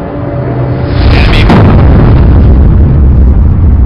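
A loud explosion booms and roars close by.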